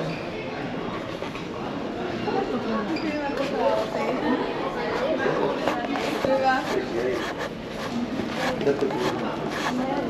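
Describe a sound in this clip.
A crowd of people chatter indistinctly in a large echoing hall.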